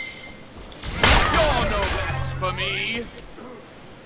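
A magic spell bursts with a loud whoosh and crackle.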